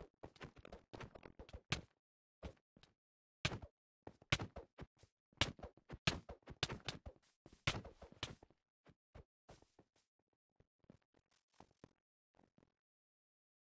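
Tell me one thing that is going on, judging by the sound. Keys on a touch keyboard click in quick taps.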